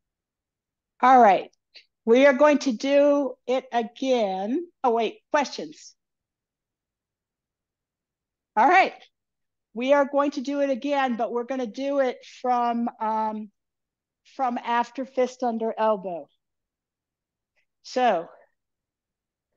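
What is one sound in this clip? An elderly woman speaks with animation, close and clear, with pauses.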